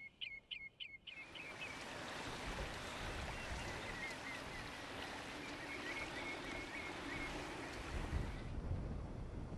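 Small waves wash and lap onto the shore.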